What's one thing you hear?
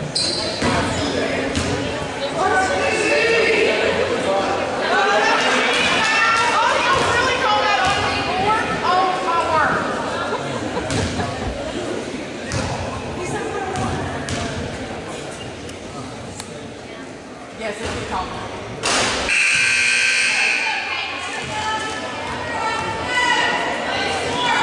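A crowd murmurs and calls out in a gym with lots of echo.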